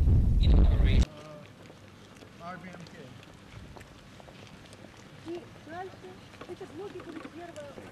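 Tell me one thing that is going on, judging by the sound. Footsteps of a group walk on pavement outdoors.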